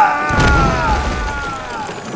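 A body thuds heavily to the ground.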